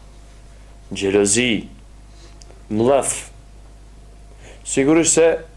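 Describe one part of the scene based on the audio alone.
A man speaks calmly and clearly into a close microphone, in short phrases with pauses.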